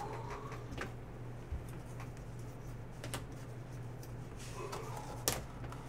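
Trading cards riffle and click in a hand.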